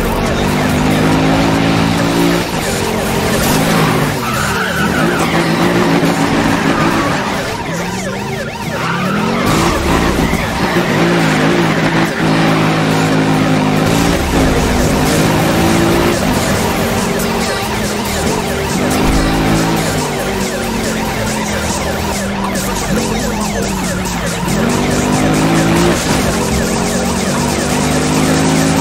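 A car engine roars loudly, revving up and down as gears shift.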